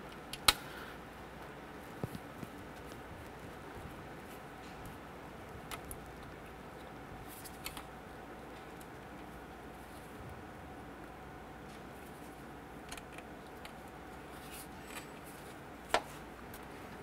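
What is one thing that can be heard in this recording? A metal wrench clicks and scrapes against a metal fitting.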